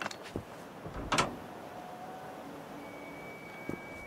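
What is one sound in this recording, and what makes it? A heavy metal door creaks open.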